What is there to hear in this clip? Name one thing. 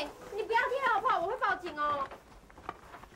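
A young woman speaks sharply and pleads.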